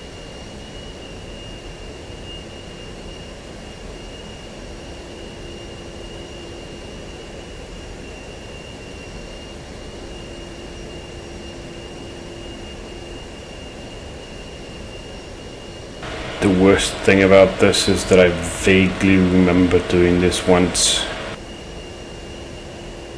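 A jet engine hums and whines steadily.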